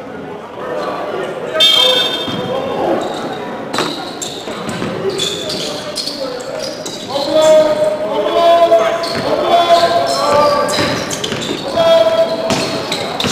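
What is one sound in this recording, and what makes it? A crowd of spectators chatters and calls out in an echoing gym.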